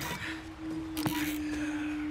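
A wooden crate thuds down.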